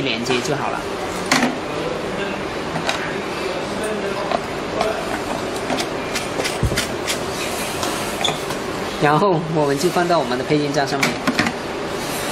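Cable plugs click into sockets on a machine.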